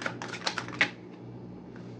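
A deck of cards is shuffled with quick riffling snaps.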